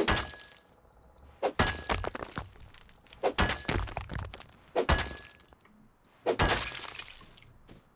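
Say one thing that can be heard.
A pickaxe strikes rock with sharp, ringing clinks.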